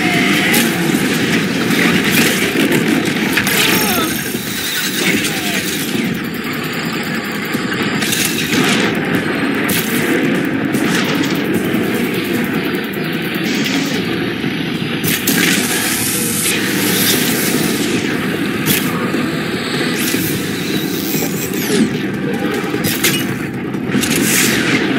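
A large machine creature stomps and roars nearby.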